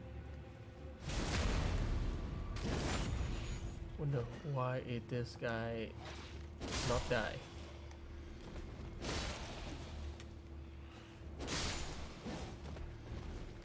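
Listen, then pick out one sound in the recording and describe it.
Swords slash and clang in quick bursts.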